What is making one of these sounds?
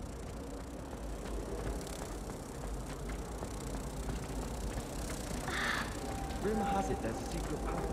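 Footsteps tap on a stone floor in a large echoing hall.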